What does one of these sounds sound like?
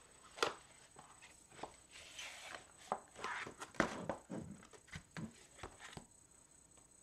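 Sheets of paper rustle and slide across a hard surface.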